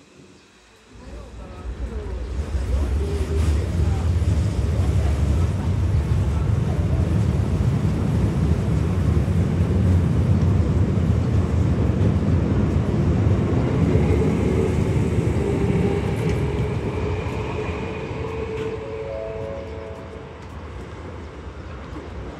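A train rumbles and rattles past close by, then fades away.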